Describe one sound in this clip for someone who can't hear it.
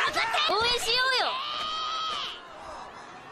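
A young woman cheers excitedly.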